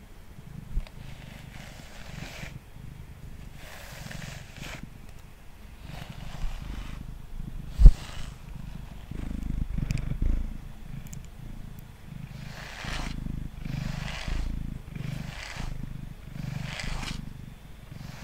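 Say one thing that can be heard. A brush rasps softly through a cat's fur close to a microphone, in slow repeated strokes.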